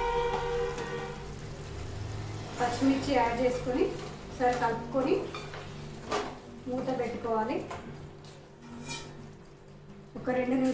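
A metal spoon scrapes and stirs a thick curry in a pot.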